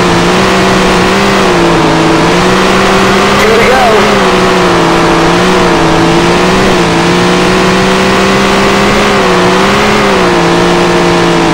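A race car engine roars loudly and steadily, rising and falling in pitch.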